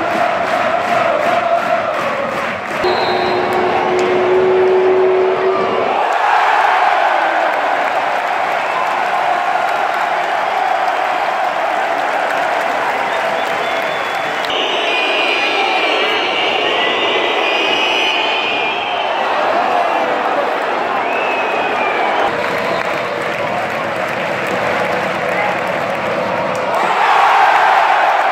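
A large stadium crowd chants and sings loudly in the open air.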